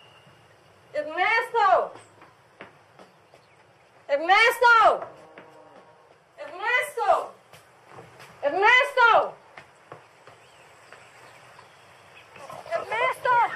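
A young woman shouts loudly, calling out again and again.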